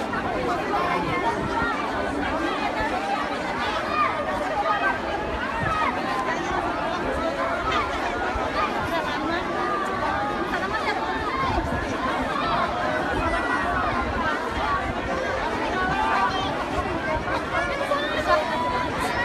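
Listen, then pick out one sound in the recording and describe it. A large crowd of men and women talks and shouts all around, close by, outdoors.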